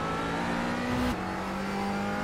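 A racing car engine shifts up a gear with a brief crack and drop in pitch.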